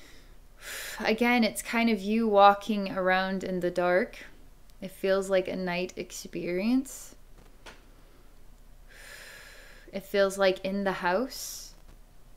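A woman speaks slowly and calmly into a microphone, with long pauses.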